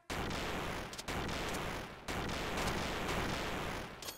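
Explosions rumble and crackle.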